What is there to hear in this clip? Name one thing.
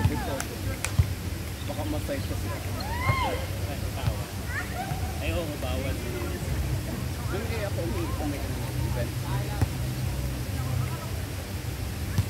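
Young people shout and call out to each other outdoors.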